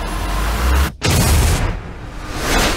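A huge explosion booms with a deep roar.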